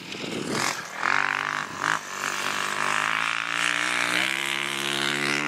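A dirt bike engine idles.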